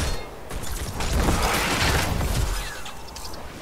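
Game spell blasts burst with a rumbling rush.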